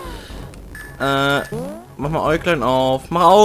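Retro video game sound effects chime and jingle.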